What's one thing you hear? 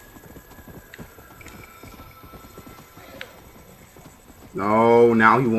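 Horse hooves thud steadily on rough ground.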